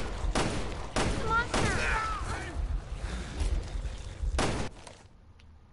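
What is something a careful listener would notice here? Gunshots ring out in a video game.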